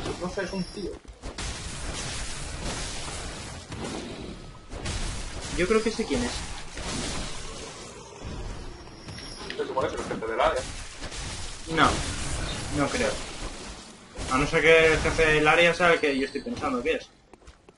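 A blade slashes and thuds into flesh.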